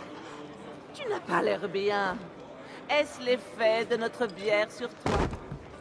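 A young woman speaks teasingly, close by.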